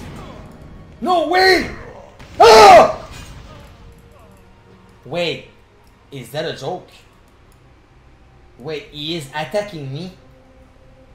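A young man talks loudly and with animation into a close microphone, at times shouting.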